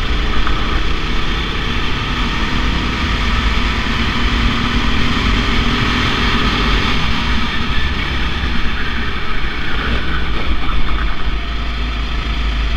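A go-kart engine buzzes loudly close by, rising and falling as the kart speeds around bends.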